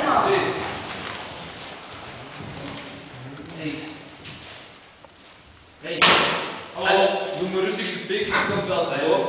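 Men and a woman talk nearby in a large echoing hall.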